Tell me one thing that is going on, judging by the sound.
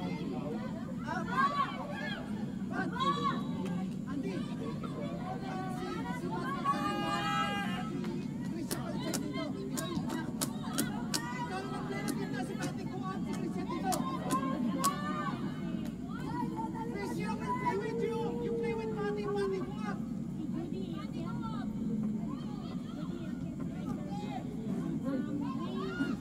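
Young women shout to each other across an open field.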